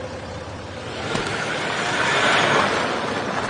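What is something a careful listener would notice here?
A car engine hums as the car pulls away and drives closer.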